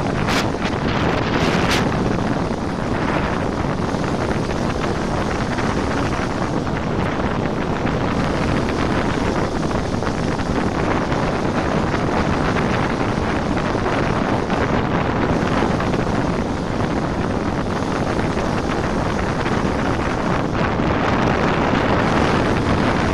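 Wind roars past a bicycle speeding downhill.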